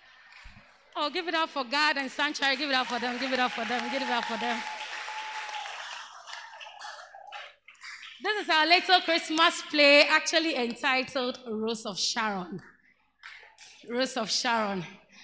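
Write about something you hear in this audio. A woman speaks with animation through a microphone and loudspeakers.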